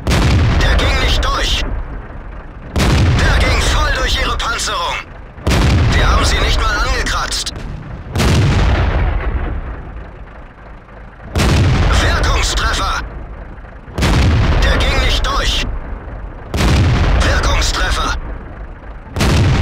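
A tank cannon fires again and again, each loud boom rumbling away.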